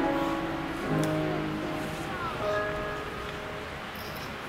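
A group of men and women sings together in an echoing room.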